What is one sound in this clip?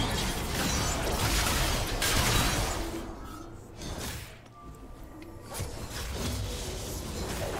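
Game spell effects whoosh and clash during a fight.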